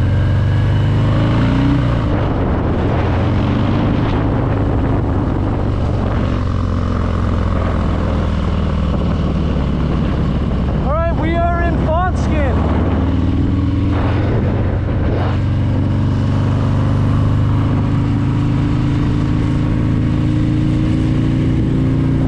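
Wind buffets the rider at speed.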